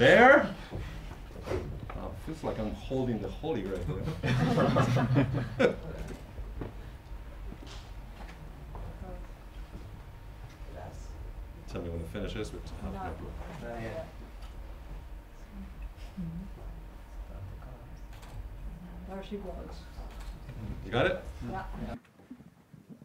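A man talks to a small audience, explaining with animation.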